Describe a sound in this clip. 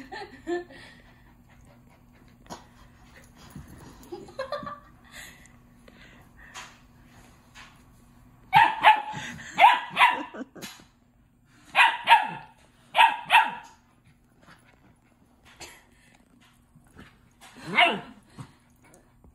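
A young woman talks and laughs playfully close by.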